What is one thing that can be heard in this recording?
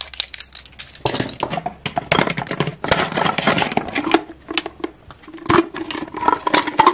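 A plastic container crinkles and rattles with balls inside.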